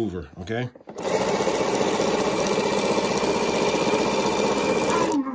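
A sewing machine stitches rapidly with a steady whirring hum.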